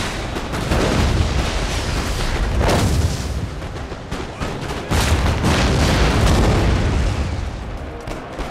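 Cannons boom heavily in the distance.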